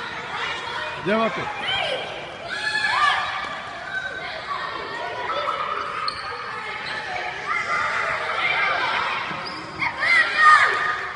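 Young girls shriek and squeal excitedly.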